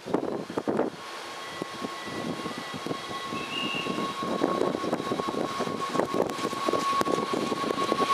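A train rumbles and clatters as it approaches on the tracks.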